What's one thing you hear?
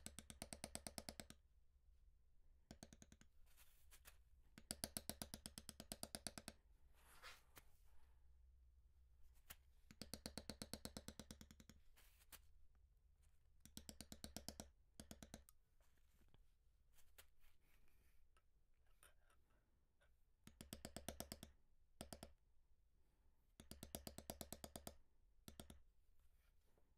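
A mallet taps rapidly on a metal stamping tool against leather, in quick bursts.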